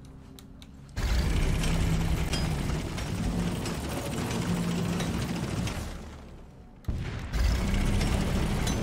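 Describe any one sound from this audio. Power drills roar as they grind through rock.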